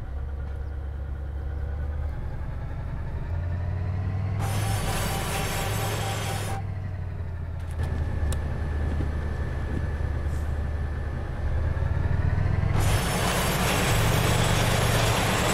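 A diesel locomotive engine idles with a steady low rumble.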